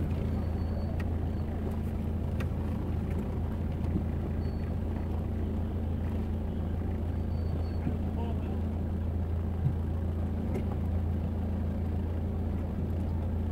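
A busy street murmurs with distant voices and traffic.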